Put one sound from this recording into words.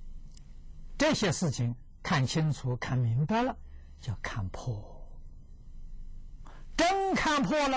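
An elderly man speaks calmly and expressively into a close microphone, with pauses.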